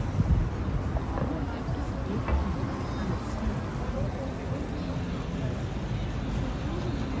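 A crowd of people chatters at a distance below.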